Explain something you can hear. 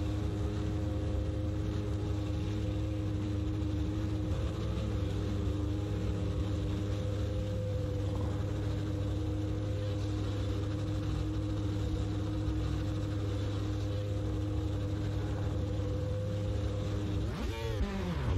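A racing car engine idles with a steady hum.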